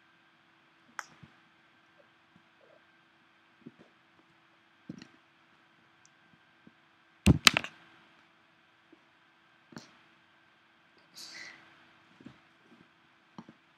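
Cats scuffle and thump softly on a carpet.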